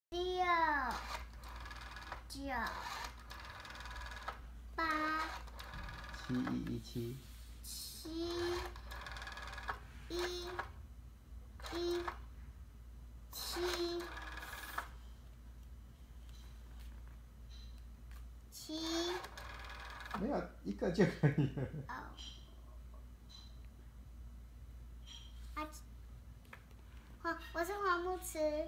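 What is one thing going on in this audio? A young girl talks and sings in a high, playful voice close by.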